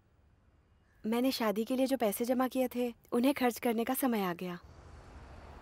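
A young woman talks warmly and cheerfully.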